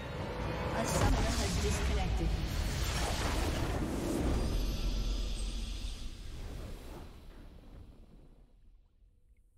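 A triumphant game fanfare plays loudly, then fades away.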